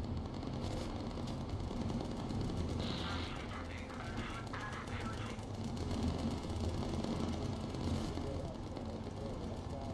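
Propeller plane engines drone steadily.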